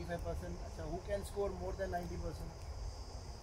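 A man speaks calmly nearby outdoors.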